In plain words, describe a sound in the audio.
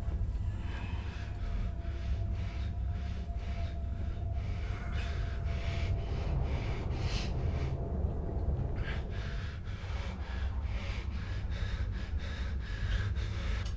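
A man breathes heavily and unevenly close by.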